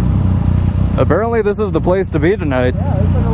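A motorcycle engine revs nearby as another rider pulls alongside.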